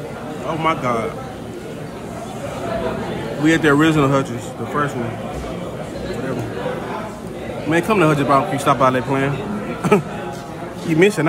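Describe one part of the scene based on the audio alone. A young man talks casually and close up.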